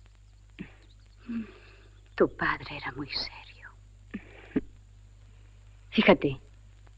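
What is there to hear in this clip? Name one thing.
A second young woman answers softly and close by.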